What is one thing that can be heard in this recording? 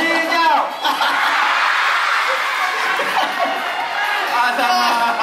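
A crowd of children shouts and cheers noisily nearby.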